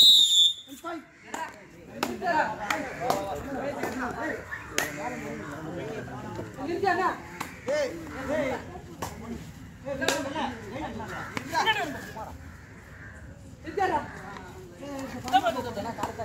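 Young men shout and chant excitedly outdoors.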